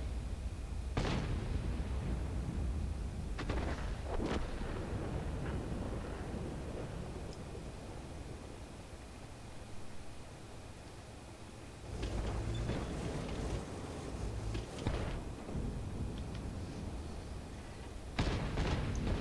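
Tank guns fire with loud booms.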